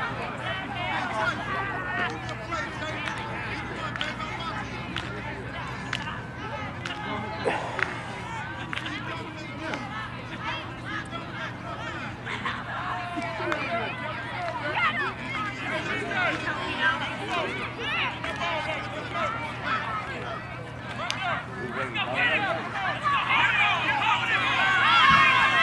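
Young players talk and shout outdoors.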